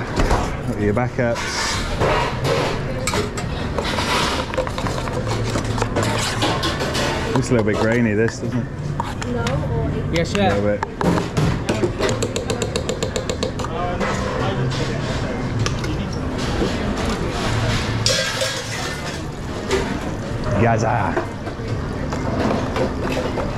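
Busy kitchen clatter and hum fill the background.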